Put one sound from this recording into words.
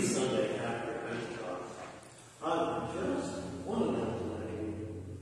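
An elderly man speaks calmly at a distance in a large echoing hall.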